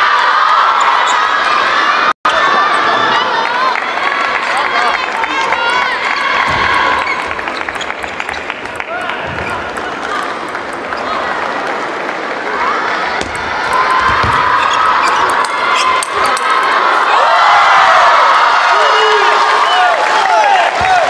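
A crowd murmurs and cheers.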